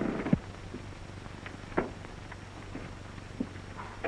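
A man walks out through a door.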